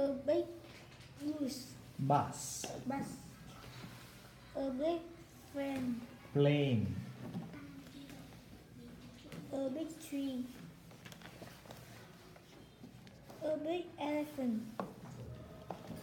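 A young boy reads out words slowly and clearly, close by.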